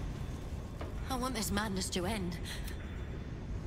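A young woman speaks in a worried voice.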